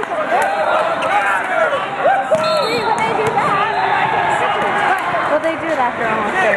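Many voices of a crowd chatter and shout in a large echoing hall.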